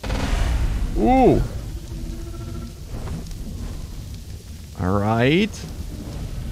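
A dragon lets out a rising and falling shriek.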